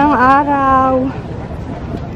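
A woman calls out loudly nearby.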